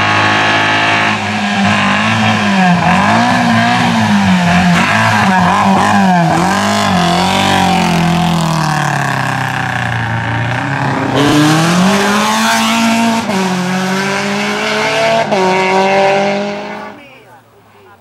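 A rally car engine revs hard and roars close by, rising and falling as it shifts gears.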